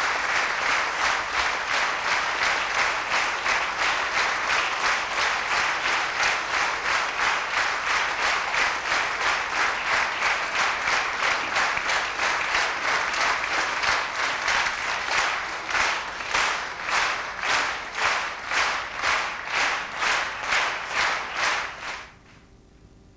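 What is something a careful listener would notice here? A large crowd claps in steady rhythm.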